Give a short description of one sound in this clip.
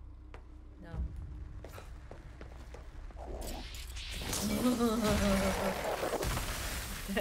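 Game blows and impacts thud sharply.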